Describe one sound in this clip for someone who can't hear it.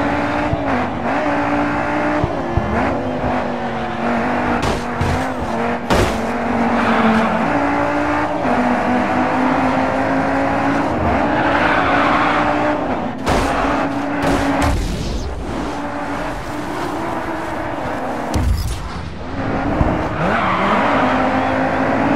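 A car engine revs high and shifts gears as it races.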